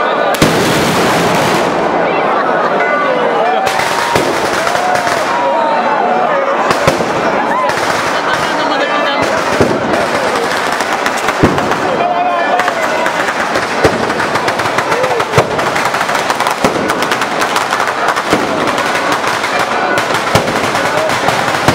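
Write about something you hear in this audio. Heavy flash bombs go off with sharp, loud blasts.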